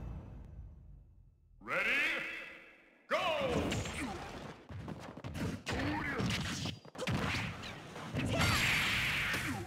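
Upbeat game music plays.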